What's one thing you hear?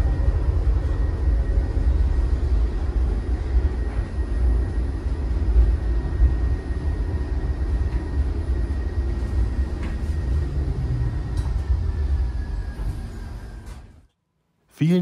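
A tram rumbles steadily along its tracks, heard from inside.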